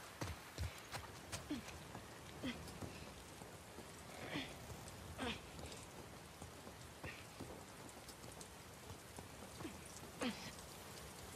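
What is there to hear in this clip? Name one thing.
Hands and boots knock on ladder rungs during a climb.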